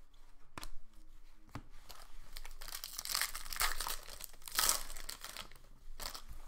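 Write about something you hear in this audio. Plastic card wrappers crinkle as hands tear them open.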